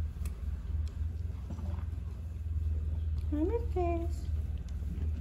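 A cat crunches dry food.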